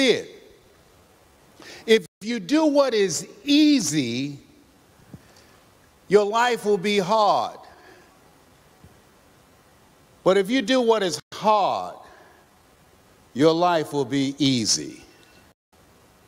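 A man speaks with animation through a microphone in a large hall, in short bursts with pauses.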